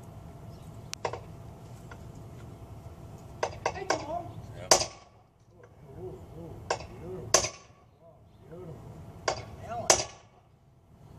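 A metal rod strikes the ground with sharp clanks.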